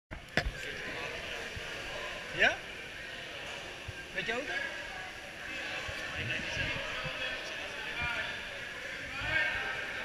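Several people talk and call out in a large echoing hall.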